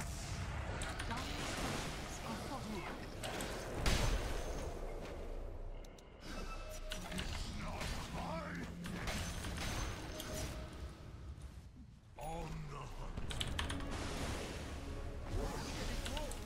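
Battle sound effects crash and whoosh in a video game.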